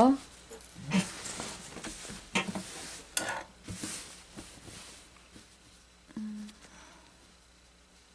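Cloth rustles as hands smooth and shift it.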